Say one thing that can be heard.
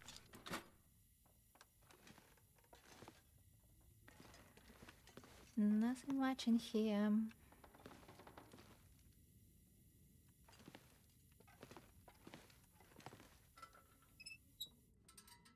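Footsteps creak on wooden floorboards.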